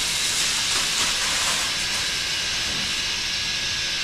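Water sprays hard from a hose with a steady hiss.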